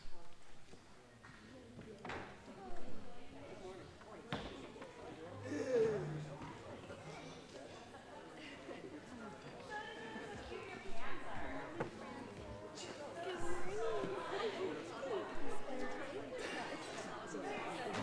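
Many men and women chat at once in a large room.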